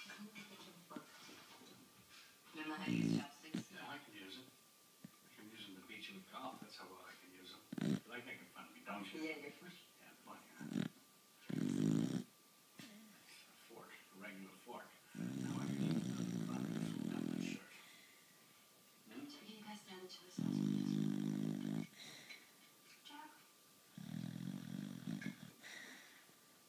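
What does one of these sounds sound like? A sleeping dog snores loudly in long, rumbling breaths.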